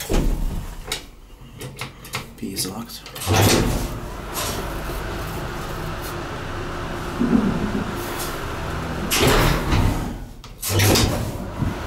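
A finger clicks an elevator push button.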